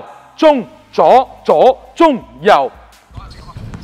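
A man calls out short words loudly, with echo in a large hall.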